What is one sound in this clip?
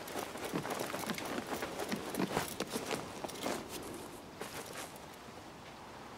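Hands scrape and thud while climbing a wooden wall.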